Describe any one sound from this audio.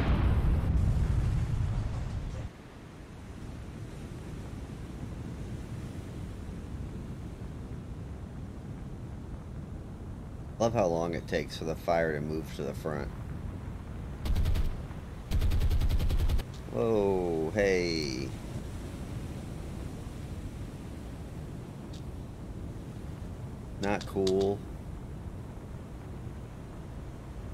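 Sea waves wash steadily.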